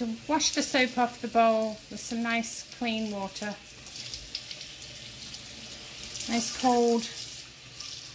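Hands scrub a bowl under water.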